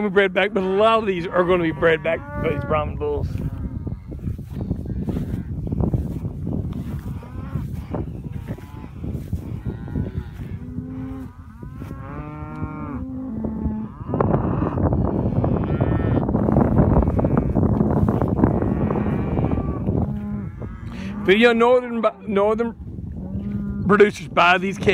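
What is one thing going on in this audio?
Cattle moo loudly nearby.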